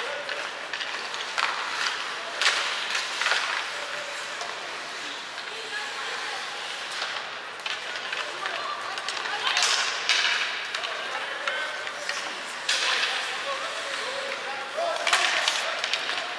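Ice skates scrape and hiss across the ice.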